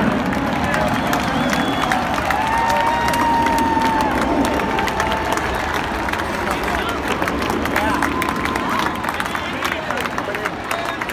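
Many people clap in a large crowd.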